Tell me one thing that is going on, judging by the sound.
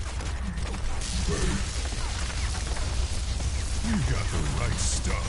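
Energy weapons fire in rapid bursts close by.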